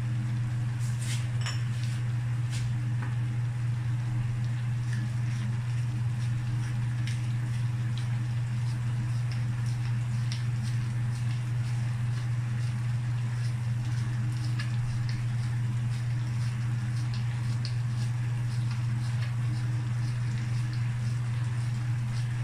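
Food sizzles and crackles in a hot pan.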